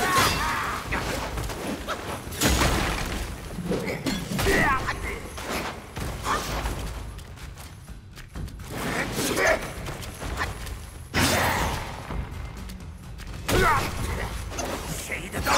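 Sword blows clash and strike heavily in a fight.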